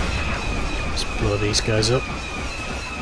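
Short electronic menu beeps sound as options change.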